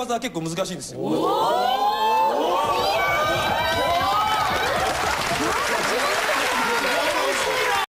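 A crowd of people laughs loudly.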